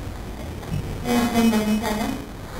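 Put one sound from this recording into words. A young woman speaks calmly into a microphone over loudspeakers.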